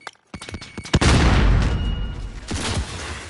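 A loud explosion booms and rumbles, then crackles.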